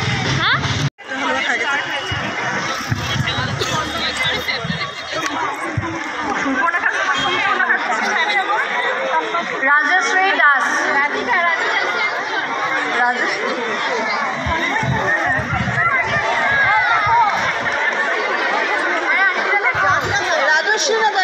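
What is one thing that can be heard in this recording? A crowd chatters outdoors with many overlapping voices.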